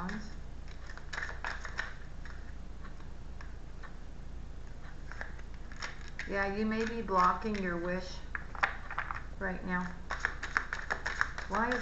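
Playing cards rustle and flick as they are shuffled.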